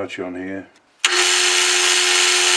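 A lathe motor starts up suddenly and runs with a steady, loud whir.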